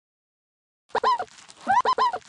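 A wet splat sounds as goo splashes across the game.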